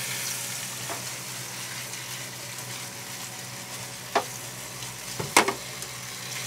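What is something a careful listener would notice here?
Food sizzles gently in a pan.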